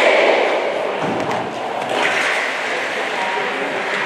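Ice stocks knock together with a sharp clack.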